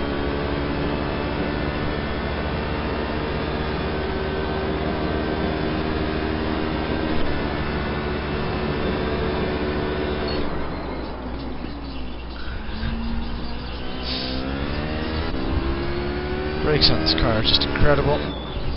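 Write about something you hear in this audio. A racing car engine roars at high speed, drops as the car slows, then revs up again.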